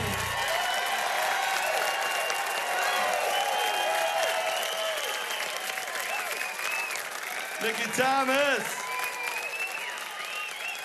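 A large crowd cheers and whistles loudly in a big echoing hall.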